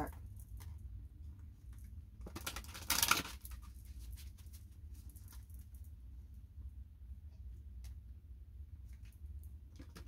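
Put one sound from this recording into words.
Playing cards rustle and slap as they are shuffled.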